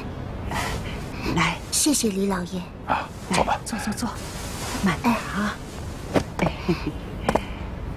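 An elderly woman speaks with emotion.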